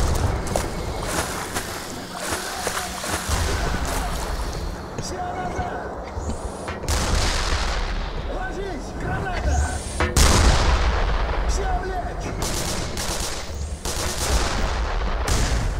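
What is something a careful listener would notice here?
Automatic gunfire rattles in short bursts.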